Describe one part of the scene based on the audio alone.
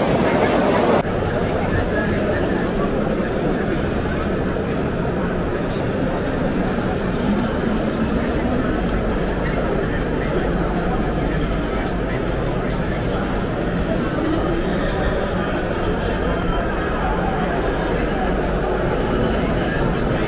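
A crowd murmurs and chatters throughout a large, echoing hall.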